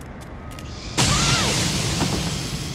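A weapon fires in a sudden burst.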